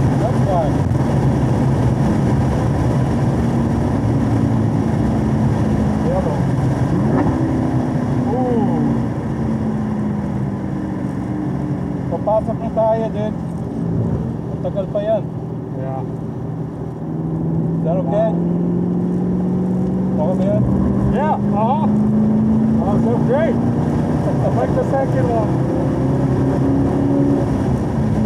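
A car engine drones loudly, easing off and then revving up again.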